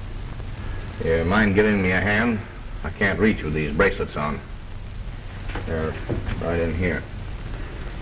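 A man speaks calmly at close range, heard through an old, hissy film soundtrack.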